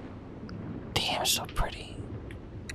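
Water splashes as a swimmer dives under the surface.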